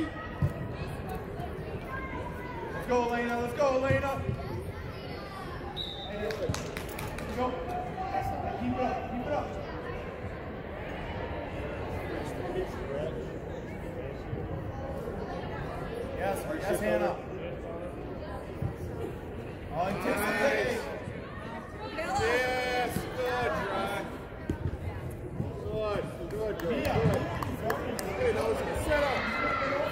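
Spectators and players shout and cheer in a large echoing hall.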